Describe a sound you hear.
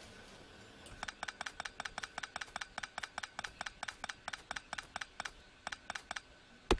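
Quick, bright clicking blips sound in a rapid, even stream.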